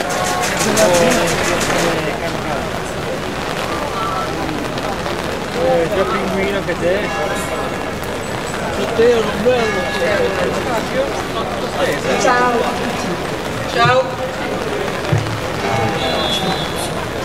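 A woman speaks into a microphone over a loudspeaker, outdoors.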